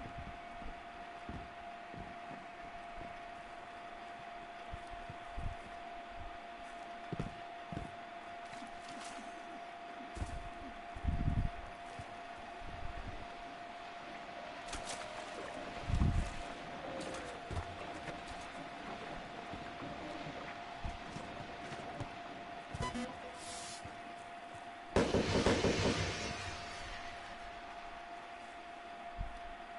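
Footsteps run quickly over stone and grass.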